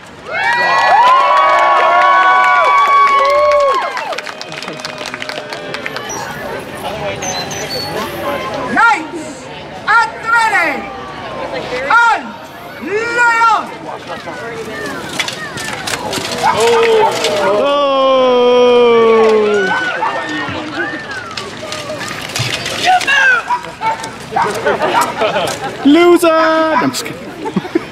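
A crowd of men, women and children cheers and calls out outdoors.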